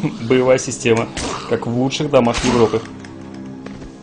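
A blade strikes flesh with wet thuds.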